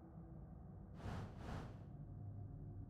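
A game menu makes two soft whooshing swipes as a page closes.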